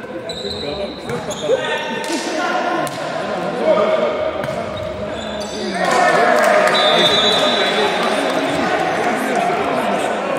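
A volleyball is struck with sharp smacks.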